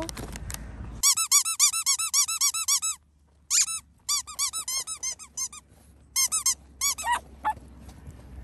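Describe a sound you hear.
A rubber toy squeaks rapidly over and over.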